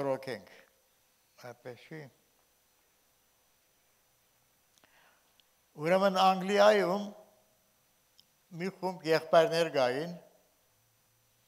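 An elderly man speaks slowly and solemnly into a microphone, with pauses.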